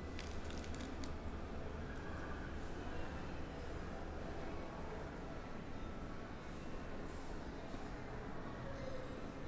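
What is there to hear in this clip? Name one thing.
Trading cards slide and rustle against each other in someone's hands.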